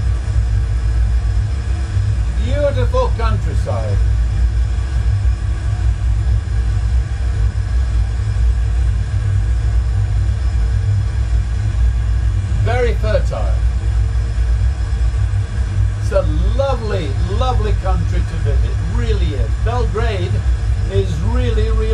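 A steady, low engine drone rumbles throughout.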